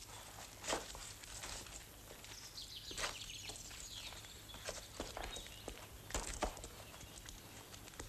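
Boots scrape and crunch on loose rock.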